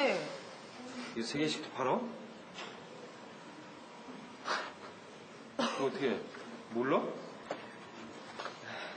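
A young man speaks and laughs nearby.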